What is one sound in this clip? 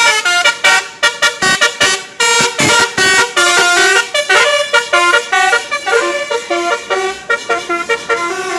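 A bus horn plays a loud, quick tune of short notes.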